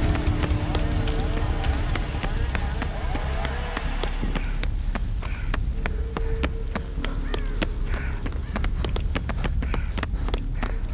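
Fire crackles and sputters nearby.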